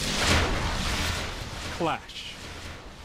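A sharp whoosh rushes through the air.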